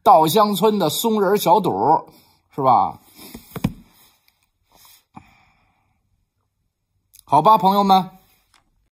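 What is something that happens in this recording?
A middle-aged man speaks close to the microphone, calmly with pauses.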